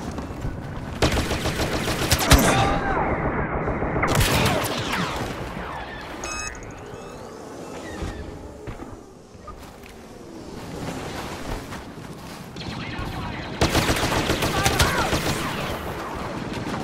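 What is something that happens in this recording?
Blaster fire crackles in rapid bursts.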